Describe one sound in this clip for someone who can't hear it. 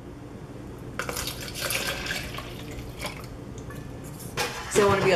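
Liquid pours from a metal pot into a cup.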